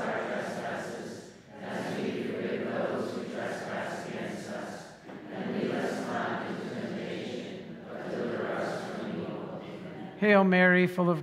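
A congregation prays aloud together in a large echoing hall.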